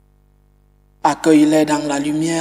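A man sings out a chant through a microphone.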